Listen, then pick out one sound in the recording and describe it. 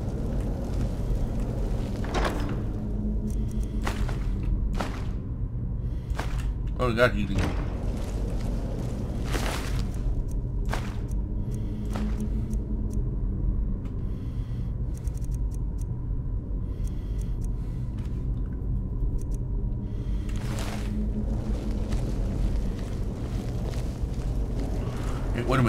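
Flames crackle and hum steadily.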